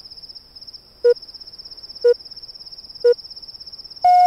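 Short electronic beeps sound once a second, counting down.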